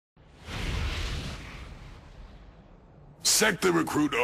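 A rushing whoosh swells and slowly fades.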